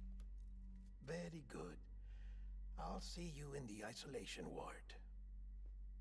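A middle-aged man speaks calmly.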